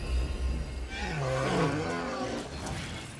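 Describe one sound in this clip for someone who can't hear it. An animal makes a low, bleating call.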